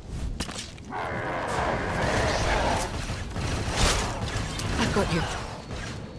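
Blaster shots fire rapidly in a fight.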